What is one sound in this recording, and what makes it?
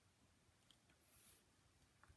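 Paper rustles briefly under a hand.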